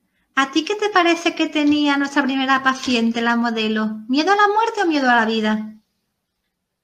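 A young woman speaks calmly through a microphone on an online call.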